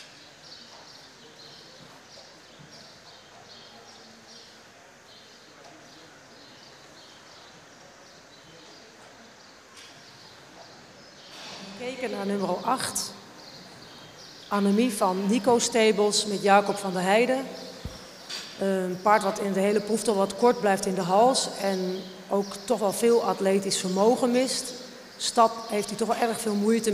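A horse trots on soft sand in a large hall.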